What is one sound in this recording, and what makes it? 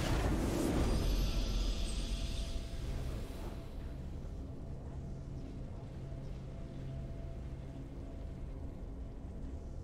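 A triumphant fanfare plays as the game ends.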